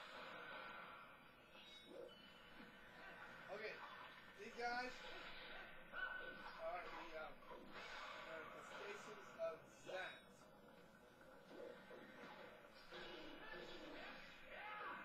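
Video game music and sound effects play from a television.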